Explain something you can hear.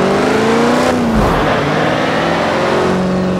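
A truck engine drops in pitch briefly as gears shift, then climbs again.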